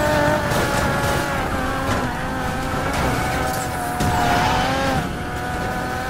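A car bangs and scrapes against another car.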